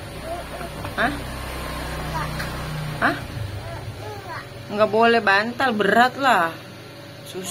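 A young child speaks and squeals close by.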